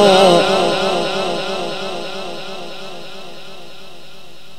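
A man chants loudly through a microphone and loudspeakers, his voice echoing and slowly fading away.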